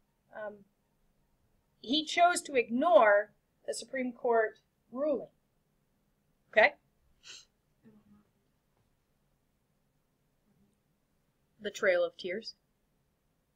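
A woman speaks into a webcam microphone with pauses between phrases.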